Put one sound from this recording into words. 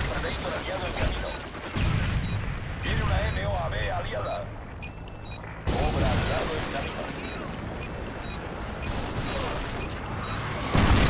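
A rifle fires loud gunshots in short bursts.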